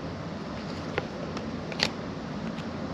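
Trading cards tap and rustle softly as hands handle them.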